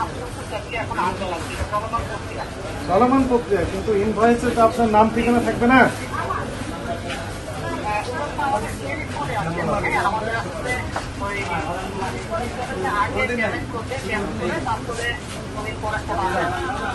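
Several men talk over one another close by.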